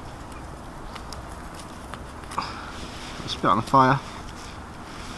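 A wood fire crackles softly outdoors.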